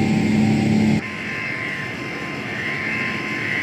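A jet airliner's engines roar from outside as it flies.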